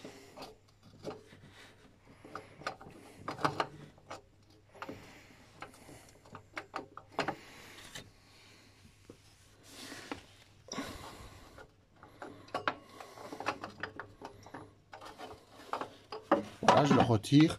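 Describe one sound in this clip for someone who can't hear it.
Metal tools clink and tap against an engine part.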